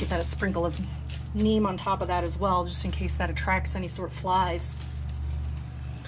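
Loose soil patters softly onto cardboard.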